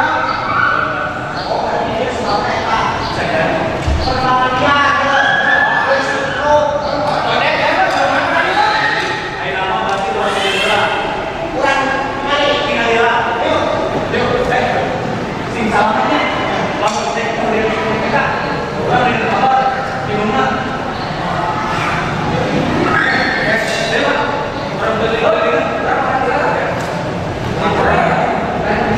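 A young man speaks loudly and with animation through a microphone.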